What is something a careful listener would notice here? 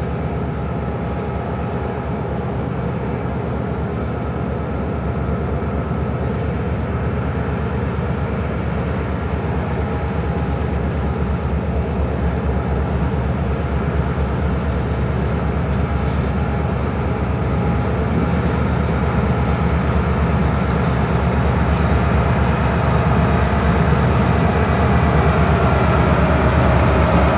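A diesel locomotive engine rumbles as a freight train approaches, growing louder.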